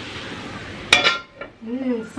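A metal lid clanks down onto a wok.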